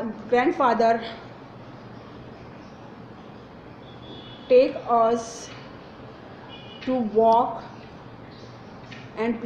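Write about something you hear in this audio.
A woman speaks slowly and clearly close by, in short phrases with pauses, like a teacher.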